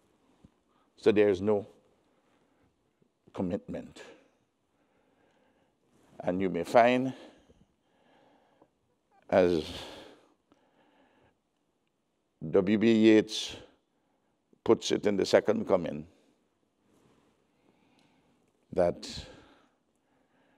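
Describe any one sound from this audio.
An elderly man speaks slowly and deliberately into a microphone, with long pauses between phrases.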